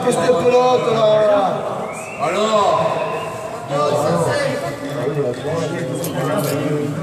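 Men talk to each other in a large echoing hall.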